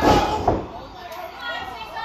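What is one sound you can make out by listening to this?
A referee slaps the mat with his hand, hitting it hard.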